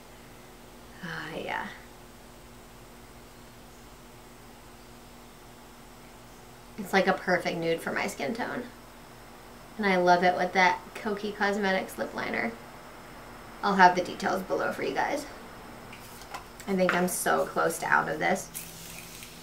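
A young woman talks calmly and close to a microphone, in short bursts.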